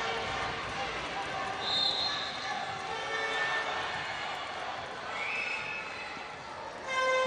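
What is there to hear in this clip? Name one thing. A large crowd cheers and chants loudly in an echoing hall.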